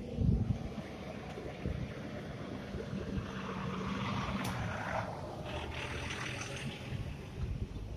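A truck engine rumbles as the truck drives past close by.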